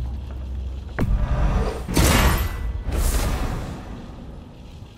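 A magical shimmering whoosh swells and rings out.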